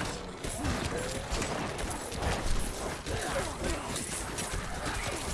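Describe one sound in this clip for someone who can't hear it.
Game combat sounds of blows and magic effects clash rapidly.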